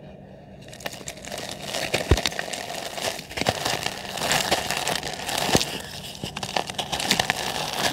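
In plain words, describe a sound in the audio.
Dry cement powder patters into a cement pot.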